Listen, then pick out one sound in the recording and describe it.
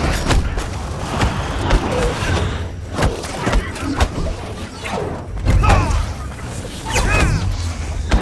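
Punches and kicks thud in a fight.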